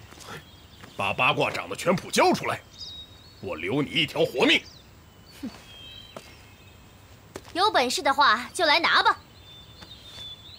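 A man speaks sternly.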